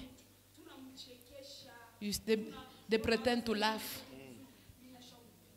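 A young woman speaks loudly and with emotion nearby.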